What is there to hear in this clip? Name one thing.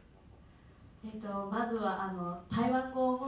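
A young woman speaks brightly into a microphone close by.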